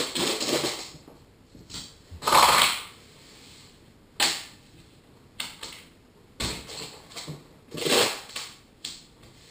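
A cloth rubs and squeaks over a car's bodywork in short bursts.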